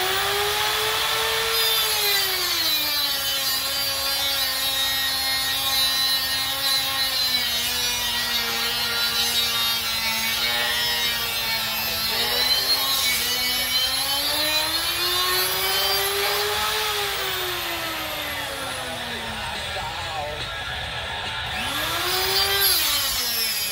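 An angle grinder cuts through a steel bar.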